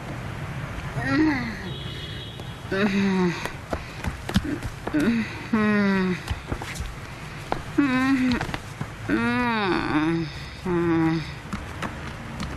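A woman screams and cries in distress nearby.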